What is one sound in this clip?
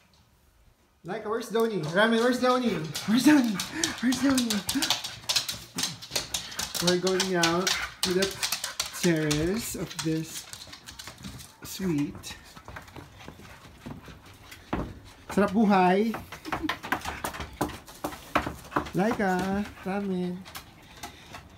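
A dog whines and yelps excitedly close by.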